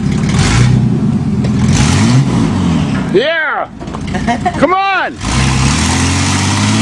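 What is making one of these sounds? A truck engine rumbles at a rough idle.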